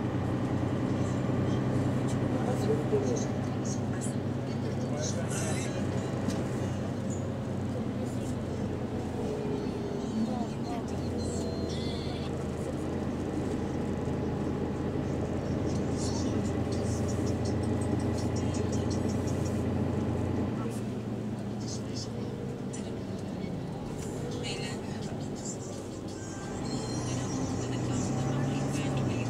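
A bus engine hums low and steady while the bus drives.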